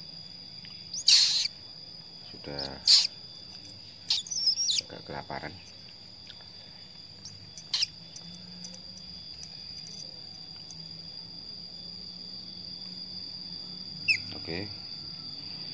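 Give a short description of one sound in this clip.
A baby bird cheeps faintly now and then.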